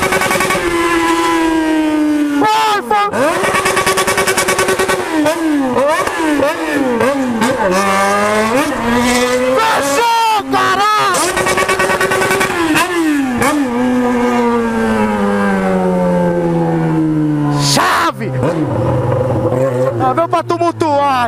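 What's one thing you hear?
A motorcycle engine revs up and down close by, shifting through gears.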